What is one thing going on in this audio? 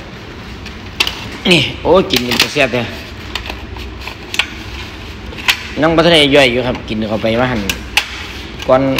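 Plastic food containers crinkle and click as a hand handles them.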